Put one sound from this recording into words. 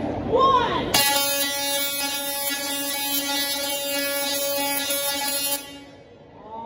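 Electric sparks crackle and buzz loudly in a steady, musical drone, then stop abruptly.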